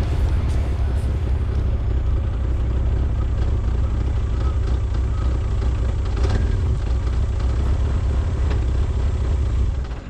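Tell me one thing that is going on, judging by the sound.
A vehicle engine rumbles steadily as it drives slowly.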